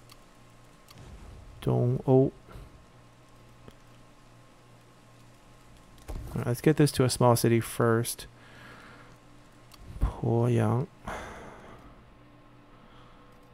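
Soft interface clicks sound.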